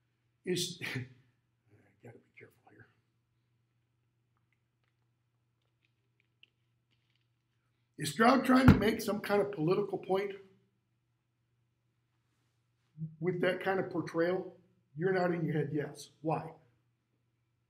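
An elderly man speaks with animation, close by, in short bursts.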